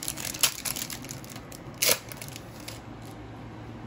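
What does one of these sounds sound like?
Trading cards rustle and slide against each other in a hand.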